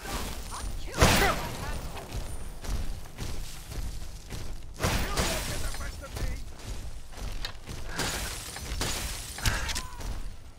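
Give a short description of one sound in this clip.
Weapons clash and thud in a fight.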